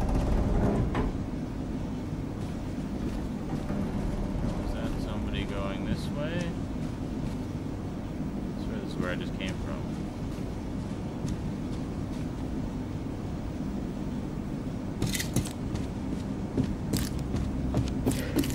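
Footsteps clank on a metal grating.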